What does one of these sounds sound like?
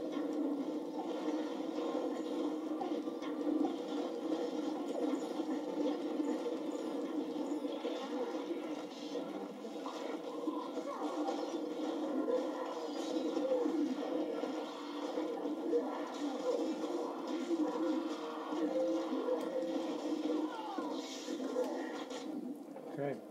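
Game music with sound effects plays from a television.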